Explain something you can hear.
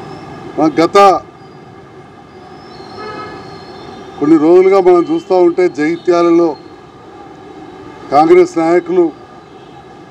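A middle-aged man speaks calmly into microphones close by, in short bursts with pauses.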